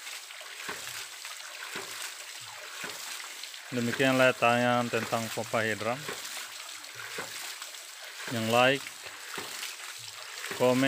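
A water pump motor hums steadily.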